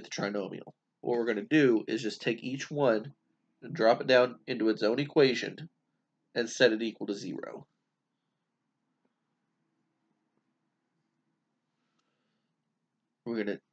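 A man speaks calmly and closely into a microphone, explaining.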